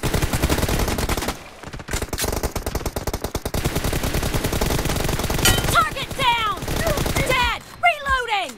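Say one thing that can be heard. Automatic gunfire rattles rapidly and close by.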